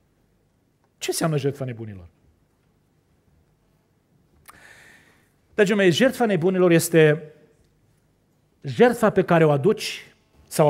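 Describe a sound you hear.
A middle-aged man preaches with emotion through a microphone, pausing between phrases.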